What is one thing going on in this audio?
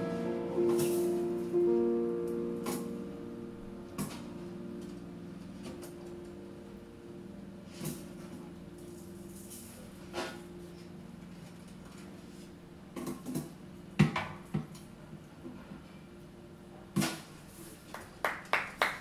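Drums and cymbals are struck softly now and then.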